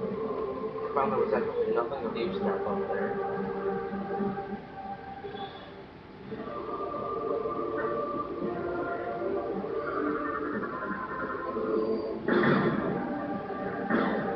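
Blaster shots fire in short bursts from a television speaker.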